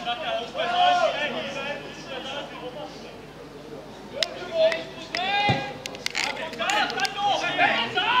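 Children and young people chatter and call out loudly close by, outdoors.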